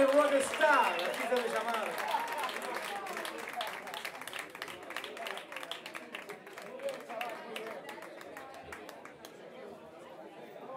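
A blues band plays loudly and slowly fades.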